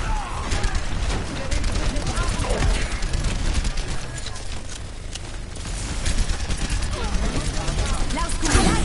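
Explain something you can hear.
A gun fires rapid bursts of electronic shots.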